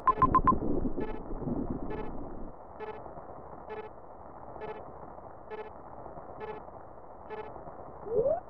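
A soft electronic blip repeats at a steady, slow pace.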